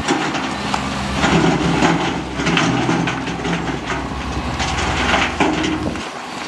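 Trucks and motorbikes drive past on a road.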